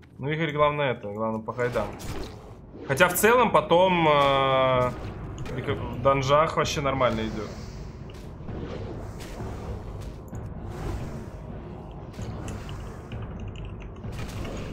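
Weapons clash and spells burst in a fight.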